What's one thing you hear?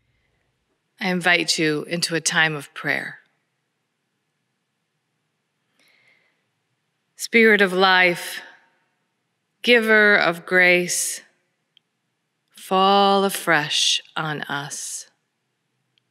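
A woman speaks calmly and slowly into a microphone, in a reverberant hall.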